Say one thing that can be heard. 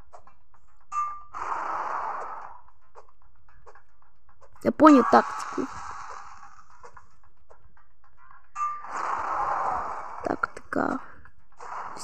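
A sword swishes through the air in quick swings.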